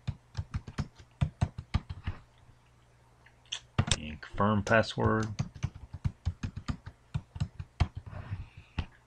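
Keys click rapidly on a keyboard.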